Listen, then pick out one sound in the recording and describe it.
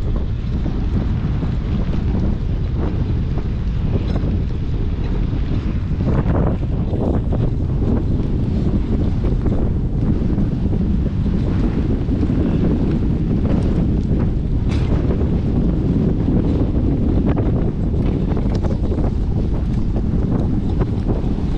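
Wind rumbles loudly against the microphone outdoors.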